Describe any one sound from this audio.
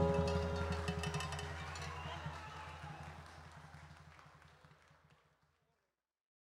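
Hand drums beat a quick, steady rhythm that fades away.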